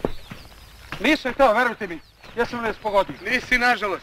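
A man speaks pleadingly and anxiously.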